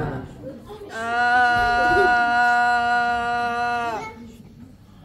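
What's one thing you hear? Young people sing a long held note together.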